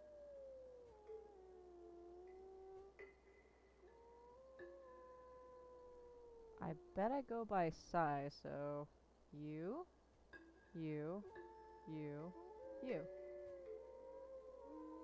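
Wind chimes ring softly with gliding tones.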